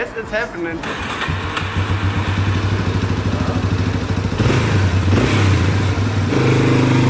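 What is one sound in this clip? A quad bike engine idles and revs.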